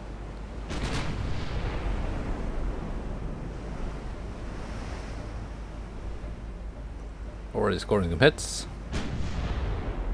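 A ship's heavy guns fire with deep booms.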